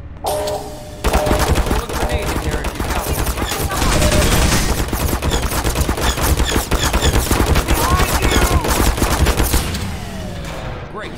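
A weapon fires rapidly in loud, crackling bursts.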